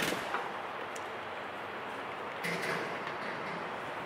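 A van door creaks and clunks open.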